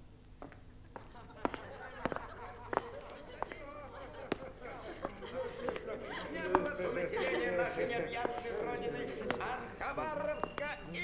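A crowd of people chatters and calls out in the distance, growing louder.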